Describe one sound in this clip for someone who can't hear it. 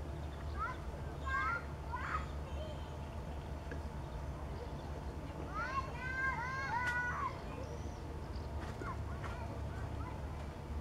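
Water laps gently against the shore.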